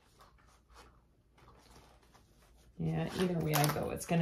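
Stiff paper rustles as it is handled.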